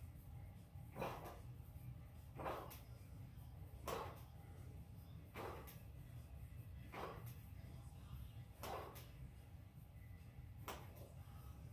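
Barbell plates knock against the floor at a steady pace.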